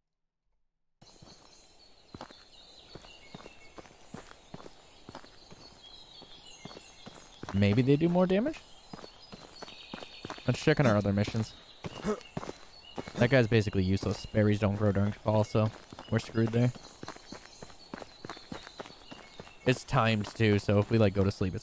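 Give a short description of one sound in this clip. Footsteps crunch on dry dirt and gravel.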